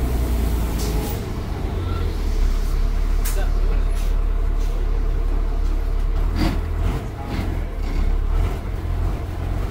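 The bus body rattles and clunks over the road.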